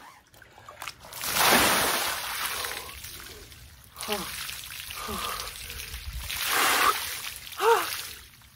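Water splashes and sloshes as a man lowers himself into a tub.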